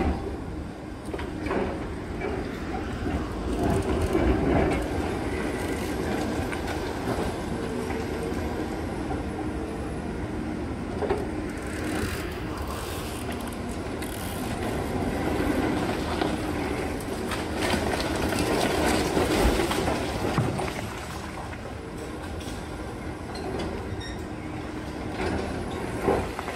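Concrete cracks and crumbles as the excavator crusher tears into a wall.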